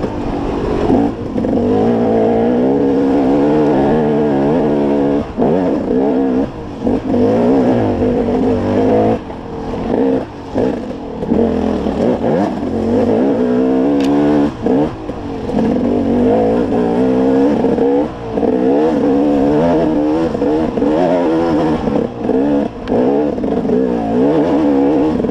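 A dirt bike engine revs up and down hard, close by.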